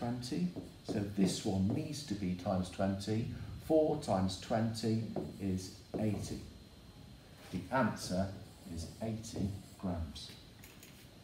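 A man explains calmly.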